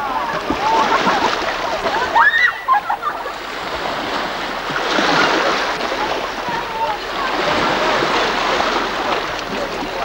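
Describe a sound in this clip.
Waves wash steadily against rocks.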